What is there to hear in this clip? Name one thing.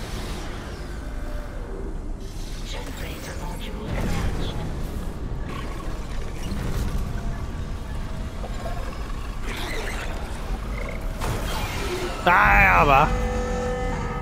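A heavy machine hums and grinds as it moves.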